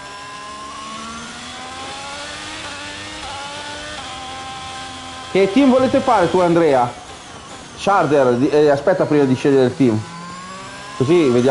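A racing car engine whines and rises in pitch as it speeds up.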